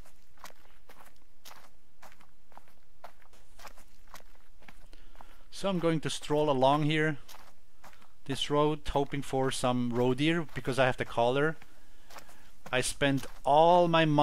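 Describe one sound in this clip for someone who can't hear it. Footsteps walk steadily on a paved road.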